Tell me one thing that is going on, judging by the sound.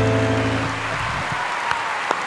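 A piano chord rings out and fades.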